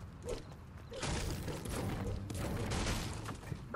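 A pickaxe strikes a wooden wall again and again.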